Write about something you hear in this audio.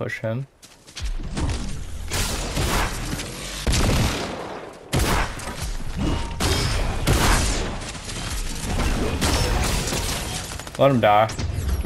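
Rapid gunfire crackles and pops.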